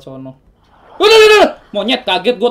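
A young man shouts loudly in fright.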